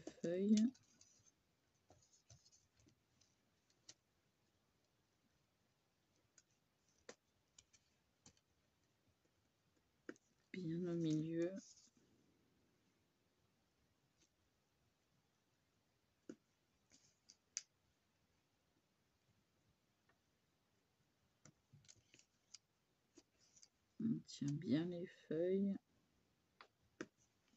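A felt-tip marker scratches softly on paper.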